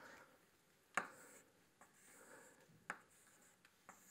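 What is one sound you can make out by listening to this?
Chalk taps on a board.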